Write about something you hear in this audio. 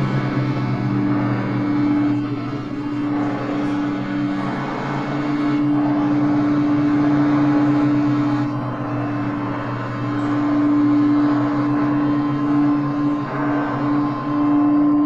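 An accordion plays sustained droning chords.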